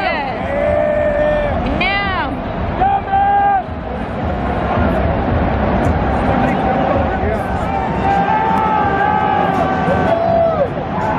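Spectators nearby shout and whoop loudly.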